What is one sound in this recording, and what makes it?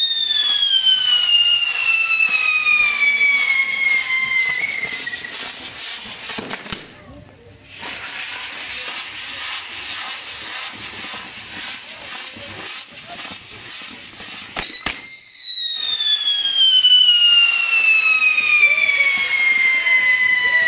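A firework fizzes and crackles as it sprays sparks.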